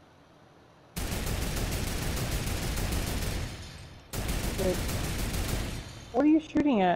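A mounted machine gun fires in rapid, steady bursts.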